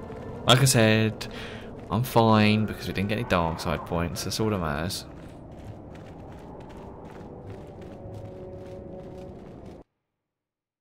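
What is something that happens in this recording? Footsteps run softly over sand.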